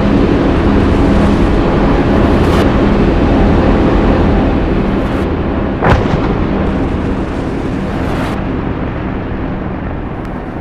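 A four-engine turboprop transport plane drones.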